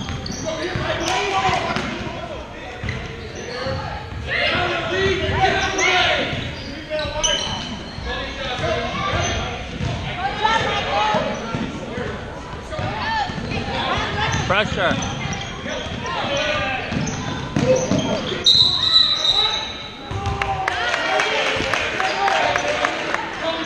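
Sneakers squeak on a hardwood floor in a large echoing gym.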